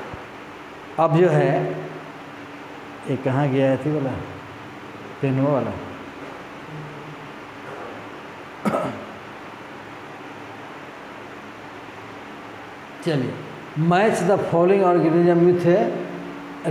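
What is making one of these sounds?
A man speaks calmly and explains, close by, in short bursts with pauses.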